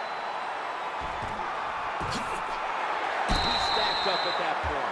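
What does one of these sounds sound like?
Football players collide with heavy thuds.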